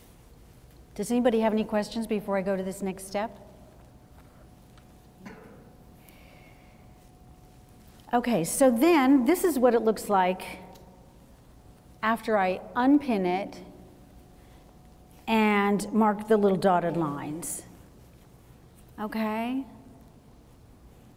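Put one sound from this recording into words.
A woman speaks calmly through a microphone, in pauses.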